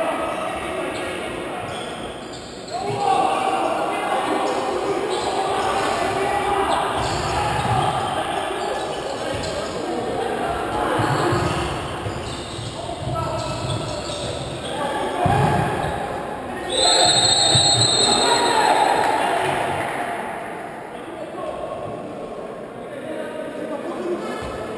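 A crowd cheers and chatters throughout a large echoing sports hall.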